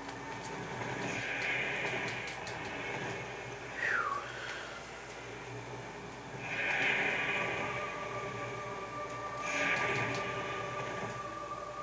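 Magic blasts whoosh and shimmer in bursts.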